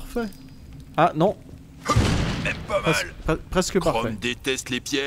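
Weapons strike and clash in a fight.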